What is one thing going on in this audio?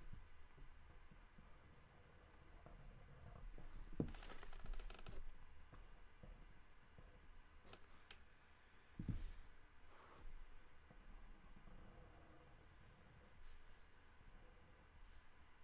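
A pen scratches and squeaks across paper.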